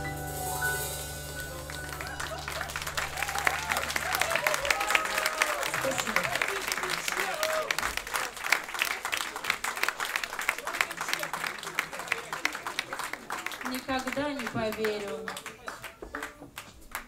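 A band plays a lively song.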